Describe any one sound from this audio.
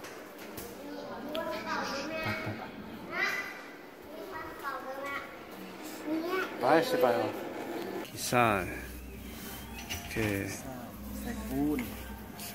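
Young children talk and call out excitedly nearby.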